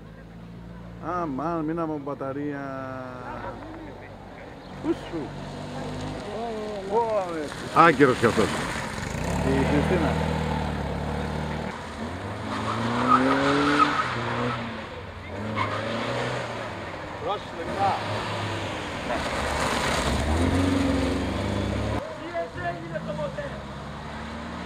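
A small car engine revs and drones as cars drive past close by.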